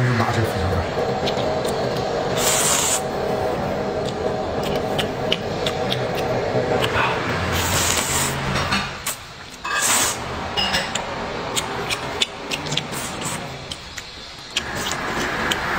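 A young man slurps noodles loudly, close to the microphone.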